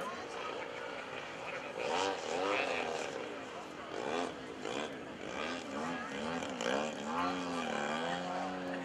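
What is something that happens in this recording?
A model plane's engine buzzes overhead, its pitch rising and falling as it throttles up and down.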